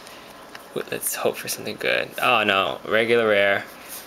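Trading cards rustle and slide against each other as hands leaf through them.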